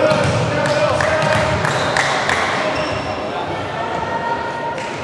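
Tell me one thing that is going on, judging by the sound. Spectators murmur and cheer in a large echoing hall.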